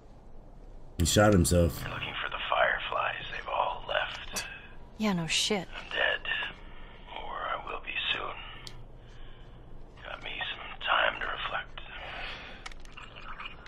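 A man speaks in a low, weary voice.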